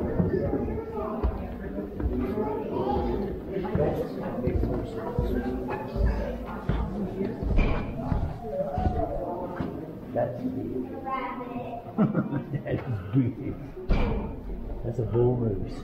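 A crowd of adults chatters in a large echoing hall.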